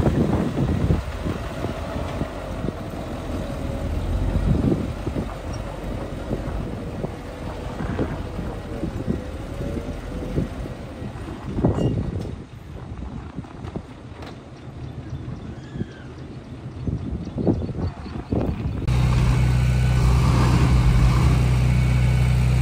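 A dump truck's engine rumbles.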